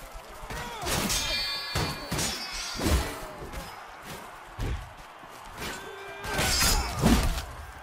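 Men shout and scream in battle.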